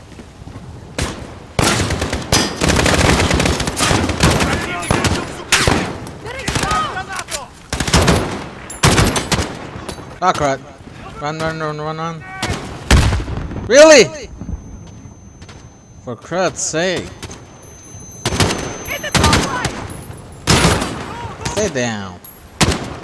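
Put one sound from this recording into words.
Rapid gunshots crack in sharp bursts.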